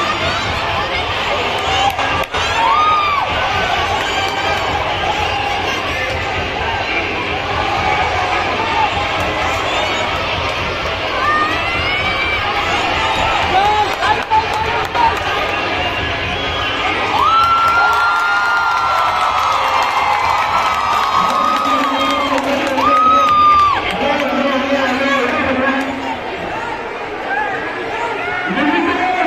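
A large crowd of young people cheers and shouts outdoors.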